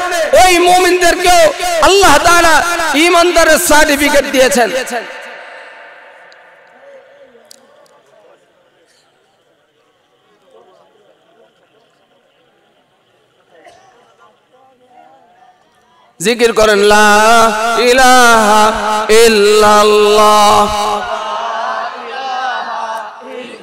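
A man preaches loudly and passionately into a microphone, his voice echoing through loudspeakers.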